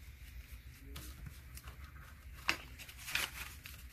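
A paper envelope crinkles as a note is tucked inside.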